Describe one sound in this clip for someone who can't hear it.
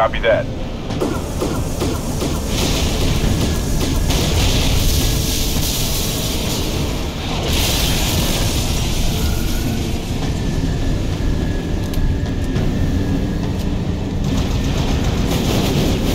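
Aircraft engines roar loudly overhead.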